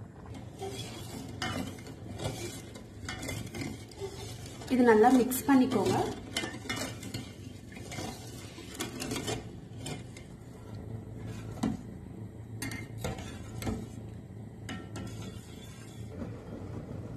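A metal ladle stirs and clinks against a steel pot.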